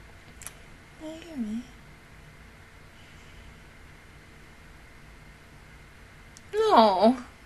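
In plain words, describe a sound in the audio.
A young woman close to a microphone makes brief, drawn-out vocal sounds.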